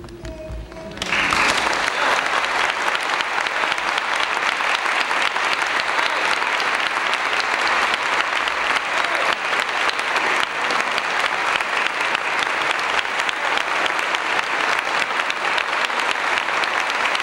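An audience applauds loudly and steadily.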